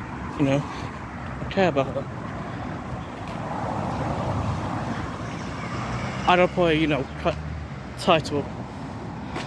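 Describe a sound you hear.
A young man talks with animation close to a microphone outdoors.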